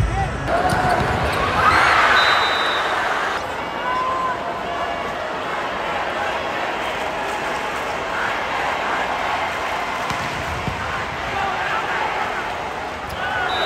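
A volleyball is struck hard with a loud slap.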